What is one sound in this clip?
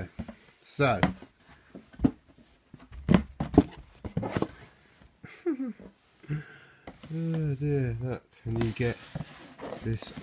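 A cardboard box knocks and rustles as hands handle it.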